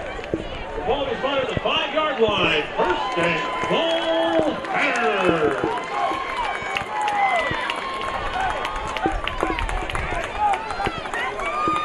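A crowd cheers and shouts in a large open stadium.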